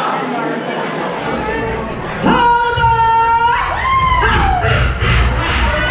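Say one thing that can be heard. A live band plays music over loudspeakers.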